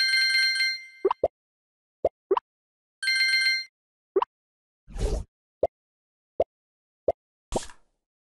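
Short game blips and pops sound one after another.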